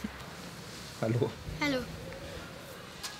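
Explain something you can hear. A boy says a short greeting.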